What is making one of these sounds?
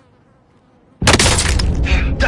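A loud explosion blasts close by.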